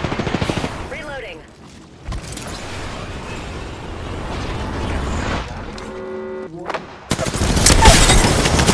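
Footsteps crunch quickly over loose rubble.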